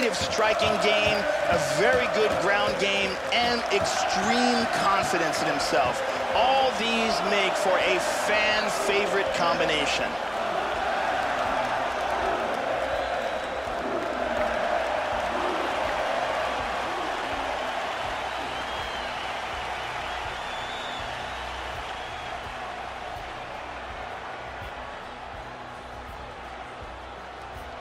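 A large crowd cheers and roars, slowly fading.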